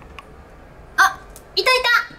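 A young woman speaks brightly close by.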